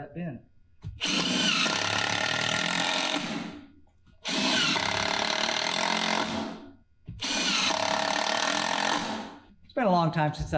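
A cordless drill whirs in bursts, driving screws into wood.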